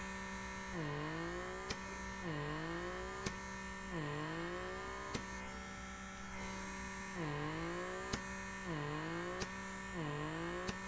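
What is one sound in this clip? A small handheld device hums steadily, its pitch dipping and rising again and again.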